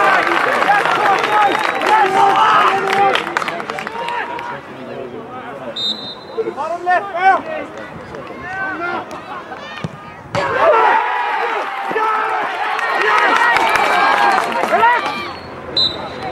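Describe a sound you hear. A crowd of children and adults cheers and shouts outdoors.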